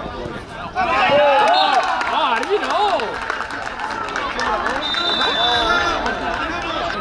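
A crowd of adults and children cheers and shouts loudly outdoors.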